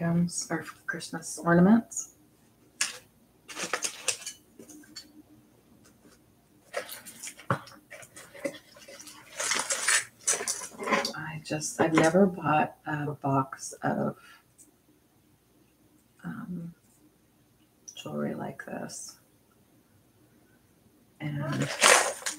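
Small metal jewellery parts clink and rattle.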